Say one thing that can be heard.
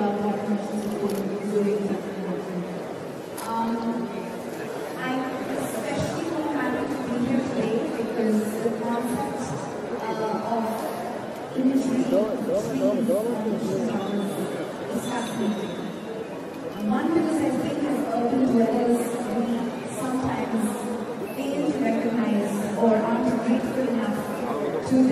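A young woman speaks calmly into a microphone, heard through a loudspeaker in a large room.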